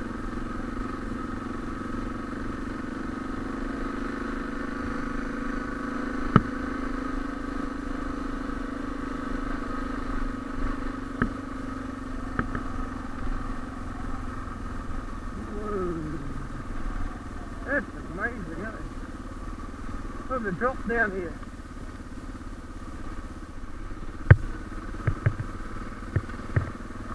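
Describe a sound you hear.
Motorcycle tyres crunch over gravel.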